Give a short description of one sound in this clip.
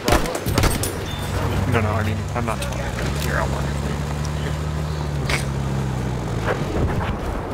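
A motor vehicle's engine drones and revs nearby.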